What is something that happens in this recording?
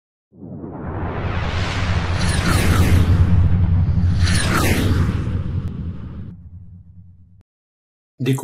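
A propeller plane engine drones loudly, rising and then fading away.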